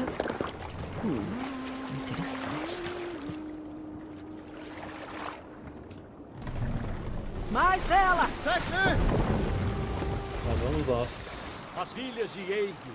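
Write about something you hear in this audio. Waves wash against a wooden boat.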